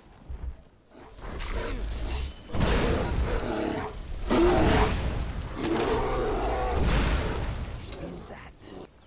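Flames roar and crackle loudly.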